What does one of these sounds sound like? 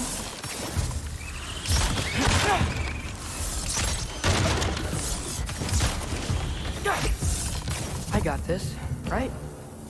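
A bowstring snaps as arrows are shot.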